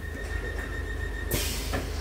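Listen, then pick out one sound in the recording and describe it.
Train doors close with a thud.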